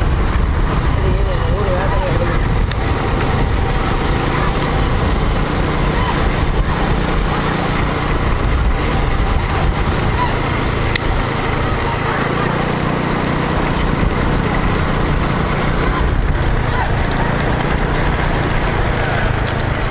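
Bullock carts rattle and rumble along a road outdoors.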